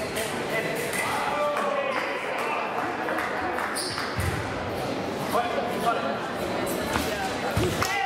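Fencers' shoes thump and squeak on the strip.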